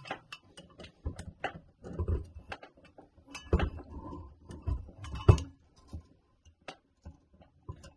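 Small metal clicks and knocks sound as a fixture is handled.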